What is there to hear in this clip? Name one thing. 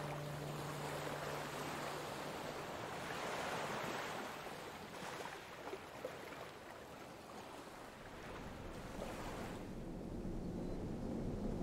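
Ocean waves break and crash steadily onto the shore.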